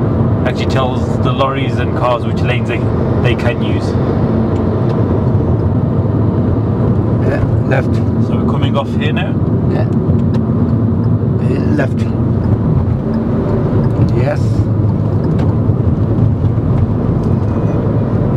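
A car engine hums steadily as tyres roll over the road.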